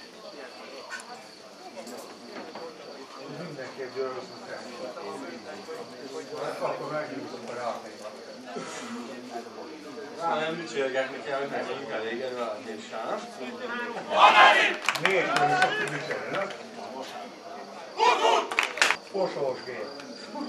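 Several men talk and call out outdoors, close by and farther off.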